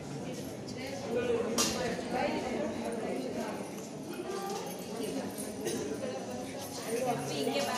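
A crowd of women and men chatter nearby.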